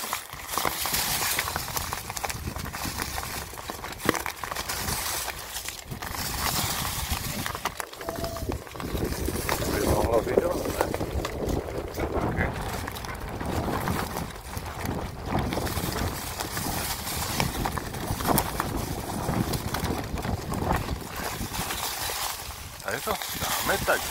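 A mountain bike rattles and clicks over bumps.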